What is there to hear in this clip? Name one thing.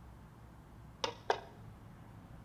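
Metal objects clink against a wooden box.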